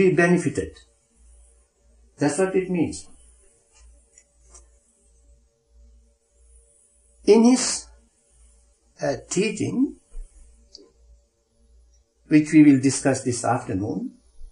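An elderly man speaks slowly and calmly, close to a microphone, with long pauses.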